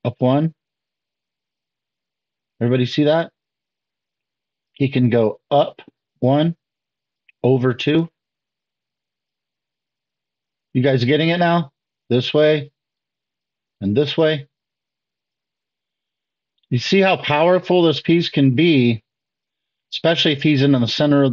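A man speaks calmly in short phrases with pauses, as if explaining to an audience.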